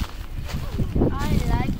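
A young child calls out in a high voice.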